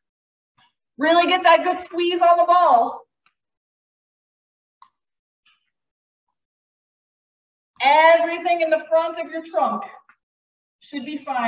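A woman speaks with energy through a microphone, giving instructions in short bursts.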